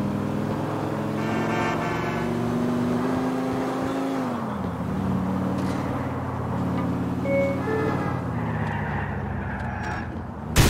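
A car engine hums steadily as a car drives along a street.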